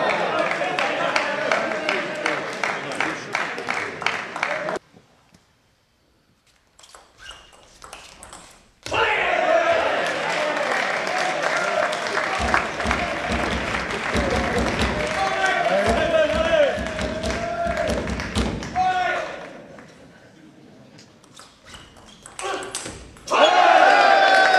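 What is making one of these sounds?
A crowd in a large echoing hall cheers and applauds.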